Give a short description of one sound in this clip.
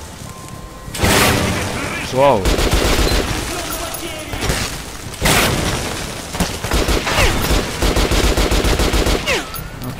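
A gun fires in rapid bursts, with loud echoing shots.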